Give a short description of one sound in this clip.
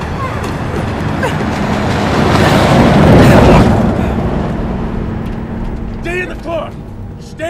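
A car engine runs while driving.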